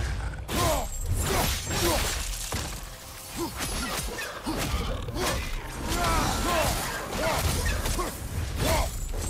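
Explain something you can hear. Creatures screech and snarl.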